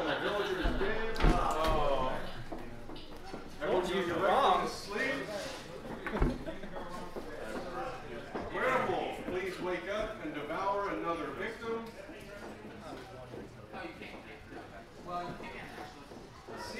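A man speaks calmly nearby, addressing a group.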